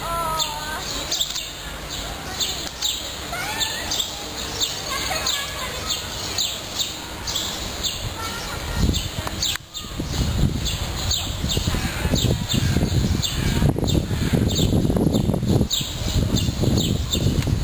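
A rhinoceros plods slowly across sandy ground with soft thuds.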